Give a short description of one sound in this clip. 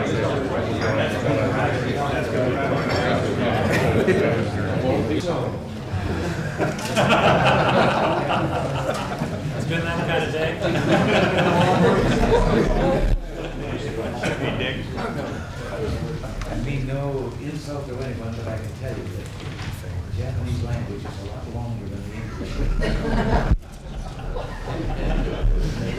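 An elderly man talks with animation.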